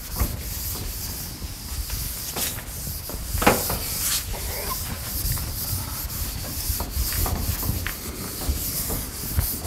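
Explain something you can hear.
A man wipes a chalkboard with a sponge.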